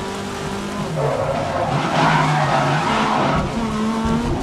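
Tyres hiss and skid on a wet track.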